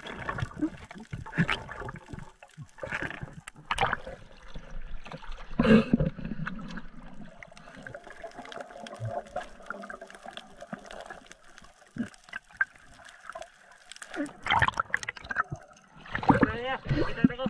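Water sloshes and gurgles in muffled bursts underwater.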